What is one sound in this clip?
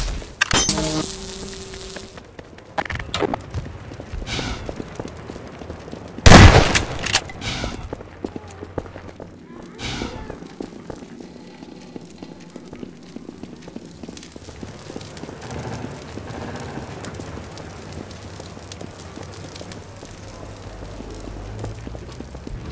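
Footsteps thud on hard ground.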